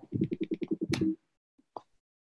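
A man laughs briefly through an online call.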